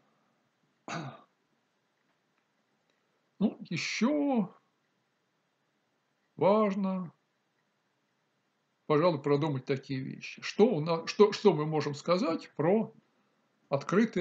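An elderly man speaks calmly and slowly in bursts, close to a microphone.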